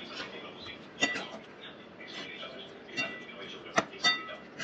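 A metal spatula scrapes and clinks against a pan while stirring food.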